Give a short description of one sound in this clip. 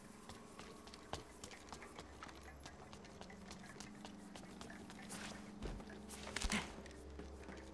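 Footsteps patter quickly and evenly on a hard floor.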